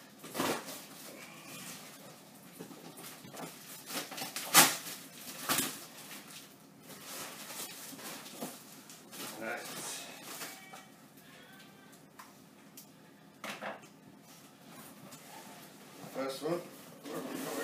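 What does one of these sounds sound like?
Cardboard and packing tape rustle and crinkle as a box is unwrapped.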